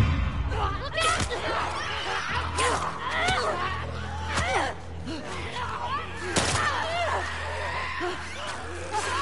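Heavy blows land during a scuffle.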